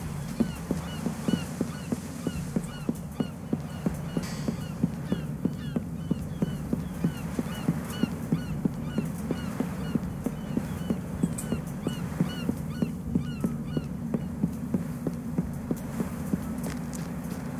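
Footsteps thud quickly and evenly on wooden planks.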